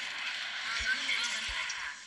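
An explosion booms in a video game.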